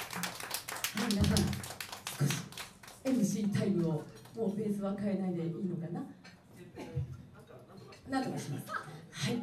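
A woman sings through a microphone and loudspeakers.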